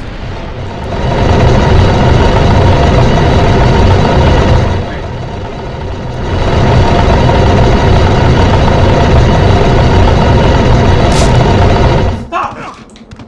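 A heavy stone block scrapes and grinds.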